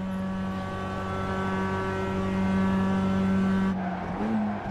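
A race car engine drones steadily at high revs.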